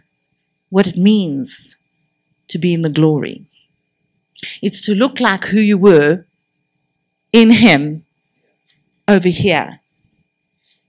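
A middle-aged woman speaks with animation into a microphone, heard through a loudspeaker in a room.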